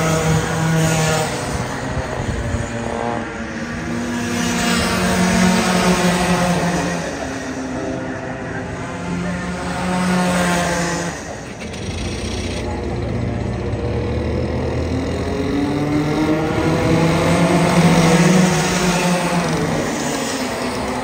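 Kart engines buzz and whine loudly as karts race past.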